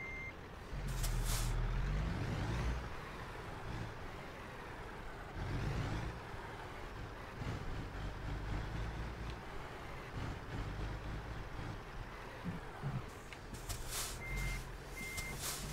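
A heavy truck engine rumbles low and steady, rising and falling as it drives.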